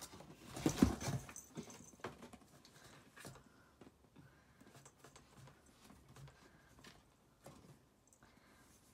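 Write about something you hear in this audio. Cardboard rustles and thumps as a cat climbs over a box.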